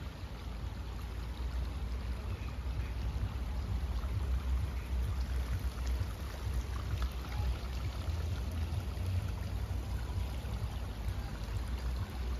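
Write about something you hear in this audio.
Wind blows outdoors, rumbling low.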